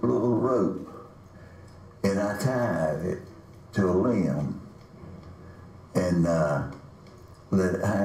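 An elderly man speaks calmly and slowly, close to a microphone, with pauses between phrases.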